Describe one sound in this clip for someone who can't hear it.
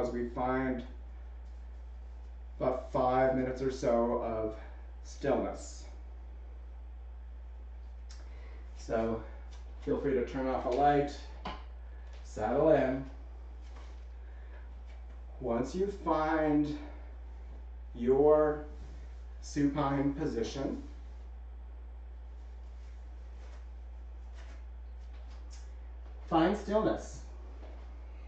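A man speaks calmly and clearly close by, in short phrases with pauses.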